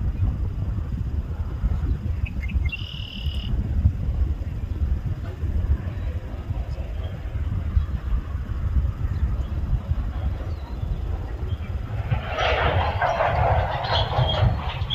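A freight train rumbles steadily past at a distance.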